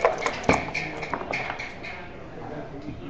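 Dice rattle and tumble onto a board.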